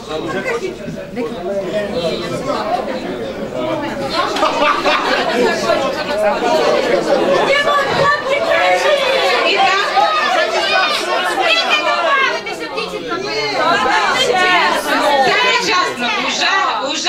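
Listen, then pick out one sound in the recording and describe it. A middle-aged woman speaks with animation into a microphone, heard through loudspeakers in an echoing hall.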